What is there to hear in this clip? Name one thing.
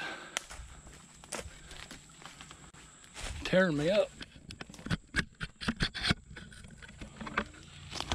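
Dry leaves crunch underfoot as someone walks.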